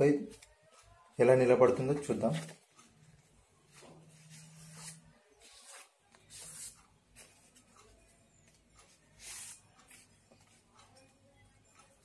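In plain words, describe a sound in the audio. Paper rustles and crinkles in a man's hands.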